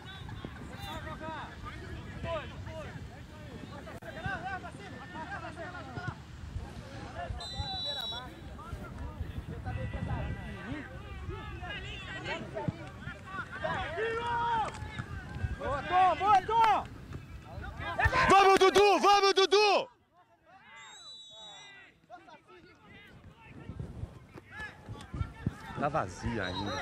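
Spectators and players shout and call out across an outdoor sports field.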